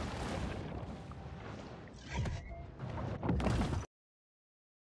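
Water bubbles and gurgles underwater.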